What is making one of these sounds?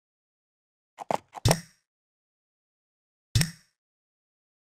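A game menu gives short bright chimes as choices are confirmed.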